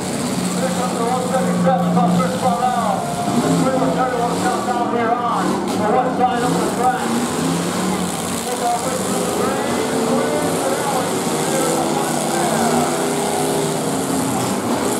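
Car engines rev and roar loudly.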